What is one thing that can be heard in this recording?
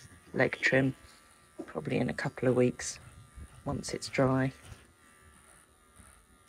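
Electric clippers hum steadily.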